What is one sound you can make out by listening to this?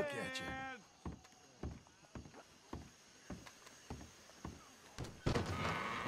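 Boots thud on wooden boards.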